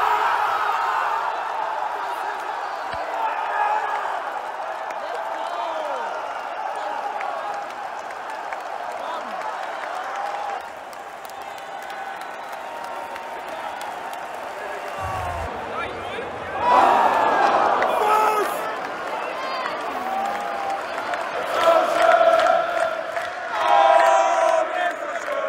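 A young man shouts and sings excitedly close by.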